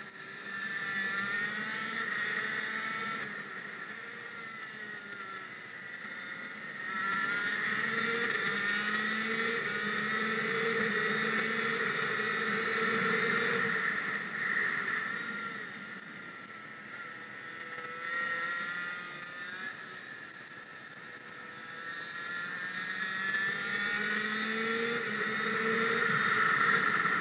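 Wind rushes past the microphone.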